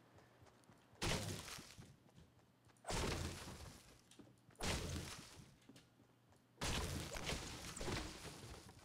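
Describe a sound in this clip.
A pickaxe strikes a tree with heavy thuds.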